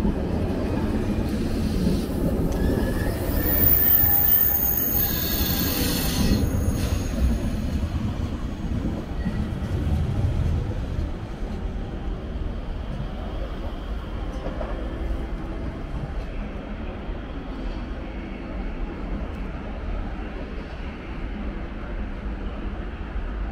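A train rolls past close by with a deep rumble, then fades as it moves away.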